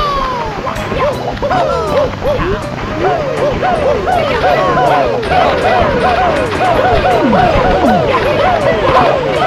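Bright, chirpy game sound effects twinkle over and over in quick succession.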